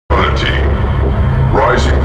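A man sings with a high, strained voice.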